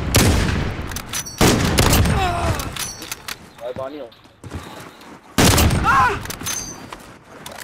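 A sniper rifle fires loud, booming shots that echo away.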